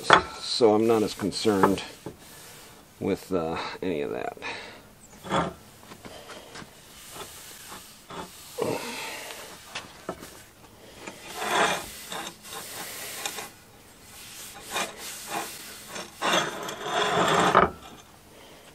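Sandpaper rubs back and forth on a wooden handle.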